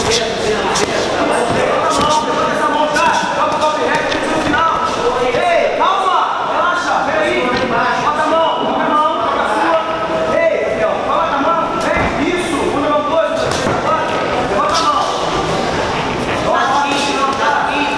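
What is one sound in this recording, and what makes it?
Padded gloves thud against a body in quick punches.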